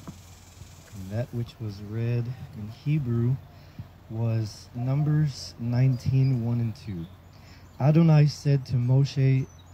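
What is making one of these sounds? A man chants a prayer aloud, close by, outdoors.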